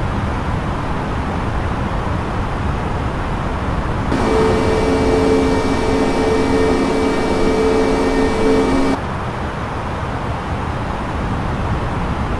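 Jet engines rumble low and steady, heard from inside a cockpit.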